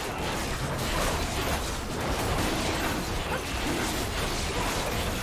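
Game spell effects crackle and burst during a fight.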